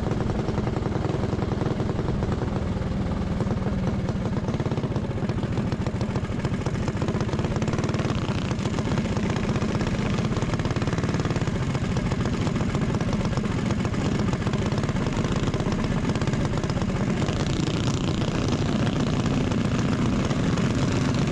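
Wind rushes past a moving go-kart.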